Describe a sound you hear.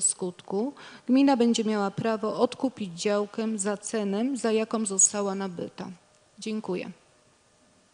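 A woman speaks calmly into a microphone.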